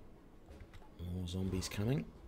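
A man speaks briefly and calmly into a nearby microphone.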